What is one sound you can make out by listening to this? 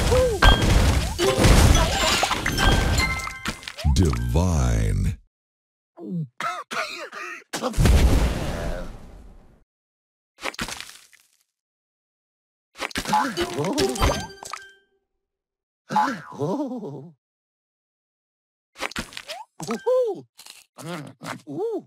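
Game chimes and sparkling effects ring out in bursts.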